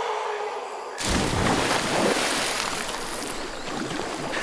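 Water splashes loudly as a body plunges in.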